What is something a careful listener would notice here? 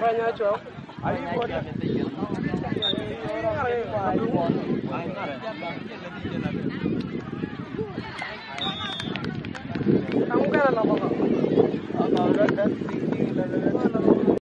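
A crowd of men and boys shouts and chatters outdoors.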